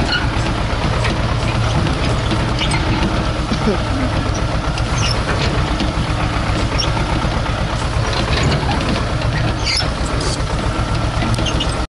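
A tractor's diesel engine chugs steadily close by.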